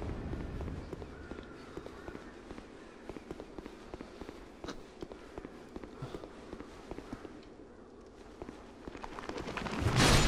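Footsteps walk slowly on stone.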